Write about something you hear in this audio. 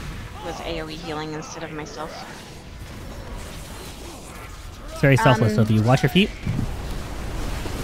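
Game spell effects crackle and whoosh in a busy battle.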